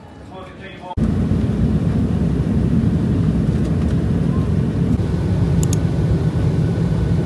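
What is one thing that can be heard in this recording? A plane's engines drone steadily in the cabin.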